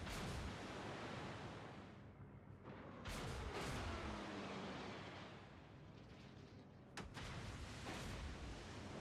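Naval guns fire in heavy booming blasts.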